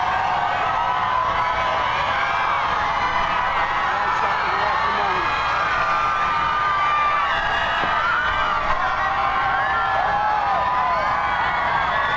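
A large outdoor crowd cheers and shouts excitedly.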